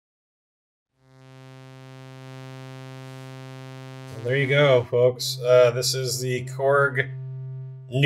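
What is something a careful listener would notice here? A synthesizer plays a steady, buzzing low drone.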